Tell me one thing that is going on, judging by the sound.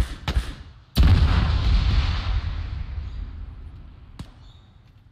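A rifle fires a loud shot that booms and echoes away.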